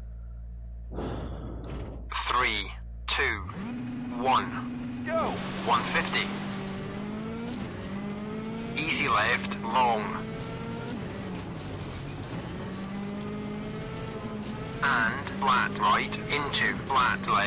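A man talks into a headset microphone.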